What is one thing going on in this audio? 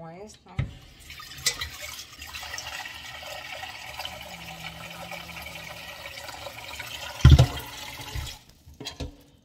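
Water runs from a tap into a metal pot.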